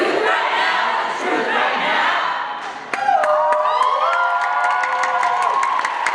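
A group of young women and a young man sing together through microphones.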